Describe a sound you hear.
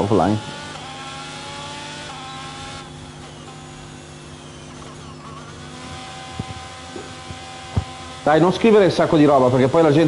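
A racing car engine whines steadily, shifting pitch through the gears.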